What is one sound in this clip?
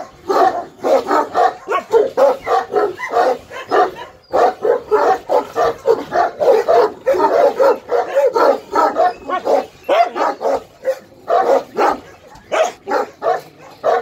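A large dog barks rapidly and deeply at close range.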